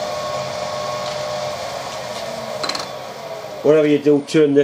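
A machine motor hums steadily, then winds down.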